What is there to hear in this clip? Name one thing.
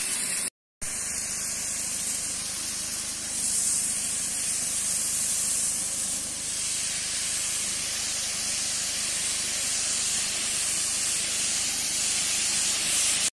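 A high-pressure water jet hisses steadily as it sprays into leaves.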